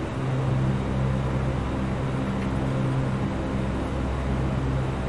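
Aircraft engines hum low and steadily.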